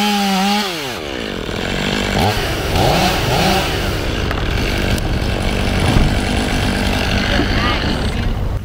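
A chainsaw engine revs and whines close by, then drones farther off.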